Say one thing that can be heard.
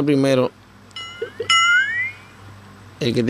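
A short electronic chime with rising tones plays.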